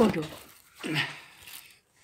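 An elderly woman speaks close to the microphone.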